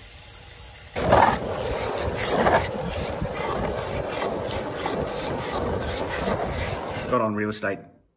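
Skateboard wheels roll over rough pavement.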